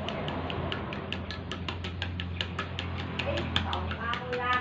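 A fork beats eggs quickly against a bowl, clicking fast.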